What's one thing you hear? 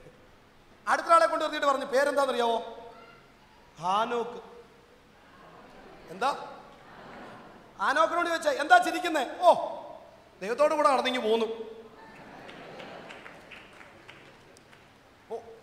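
A man speaks with animation through a microphone, in bursts with pauses, his voice echoing in a large room.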